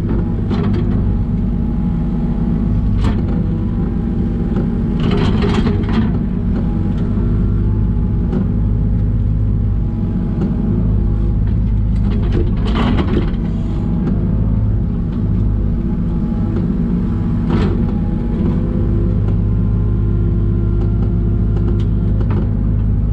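A hydraulic digger whines as its arm moves.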